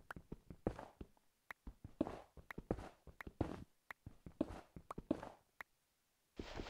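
A pickaxe chips and crunches at stone blocks in quick repeated strikes.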